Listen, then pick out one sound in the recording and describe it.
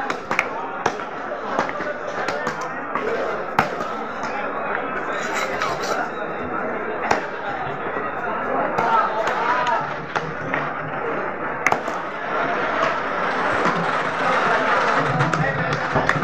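A heavy knife chops through fish on a wooden block with sharp thuds.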